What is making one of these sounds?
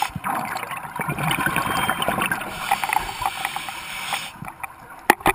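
Air bubbles from divers gurgle and crackle underwater.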